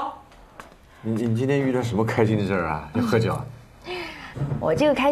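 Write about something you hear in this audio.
A young woman asks questions close by.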